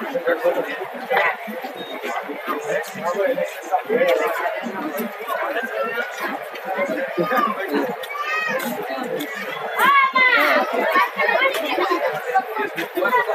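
A crowd of men and children chatter nearby outdoors.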